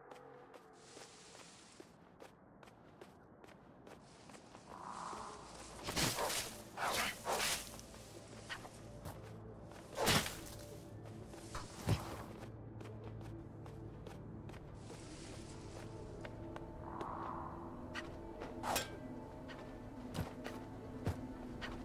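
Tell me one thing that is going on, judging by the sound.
Light footsteps patter through grass.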